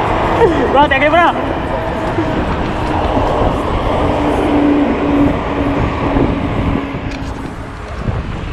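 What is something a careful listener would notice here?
A car drives past close by on the road.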